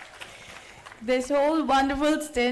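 A woman speaks clearly through a microphone.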